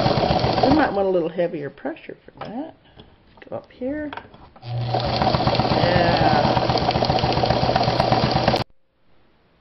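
A sewing machine whirs and clatters rapidly as it stitches.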